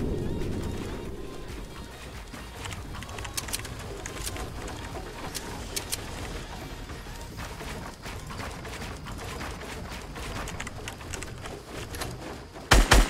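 Wooden building pieces snap into place with quick clacking knocks.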